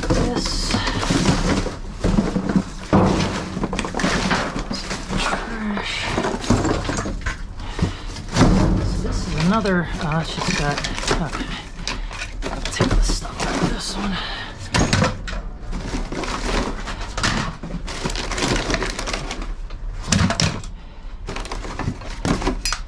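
Plastic bottles and wrapping crinkle and crackle.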